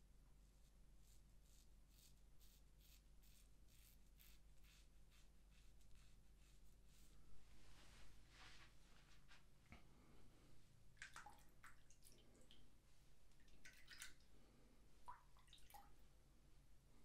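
A razor scrapes softly across stubble.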